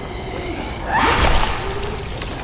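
A blow lands with a heavy, wet thud.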